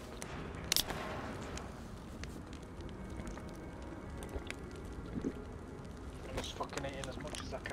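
A campfire crackles and pops close by.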